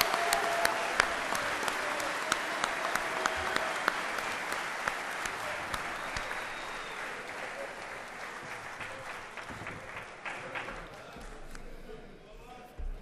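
A large audience applauds in an echoing hall, and the applause slowly fades.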